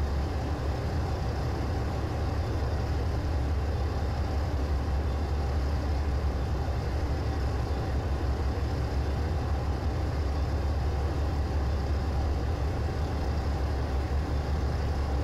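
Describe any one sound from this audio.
A diesel locomotive engine drones steadily.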